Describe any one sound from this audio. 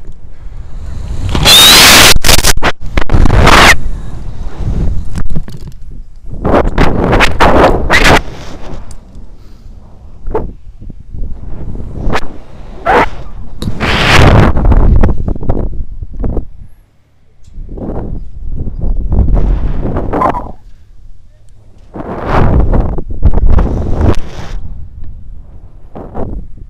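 Wind rushes in surges past a swinging rope jumper.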